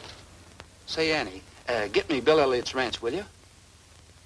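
A man talks calmly on a telephone.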